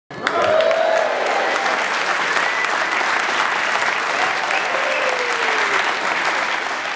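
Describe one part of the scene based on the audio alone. A large audience cheers and chatters loudly in an echoing hall.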